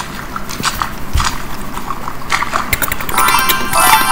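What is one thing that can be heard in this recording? A sponge scrubs wetly with soft bubbling sounds.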